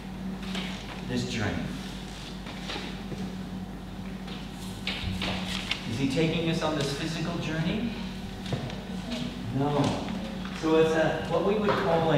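A middle-aged man speaks calmly in a large echoing room.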